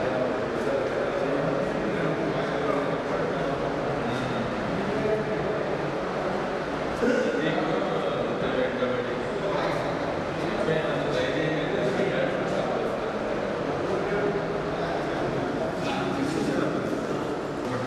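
Middle-aged men talk calmly among themselves nearby.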